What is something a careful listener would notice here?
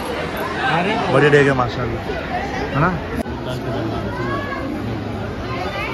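A crowd of men and children talk and call out nearby.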